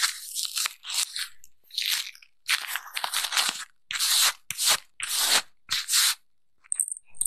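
Fingers tap and click on small plastic objects up close.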